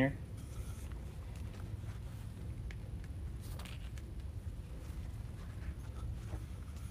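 Ribbon rustles and crinkles as hands fold and handle it.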